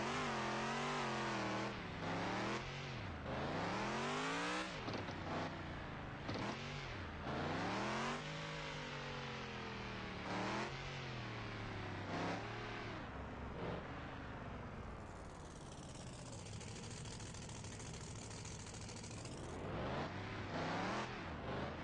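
An off-road vehicle's engine revs up and down, rising and falling in pitch.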